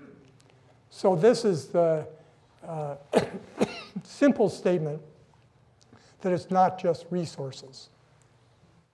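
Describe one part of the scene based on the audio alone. An older man speaks calmly into a microphone over a loudspeaker.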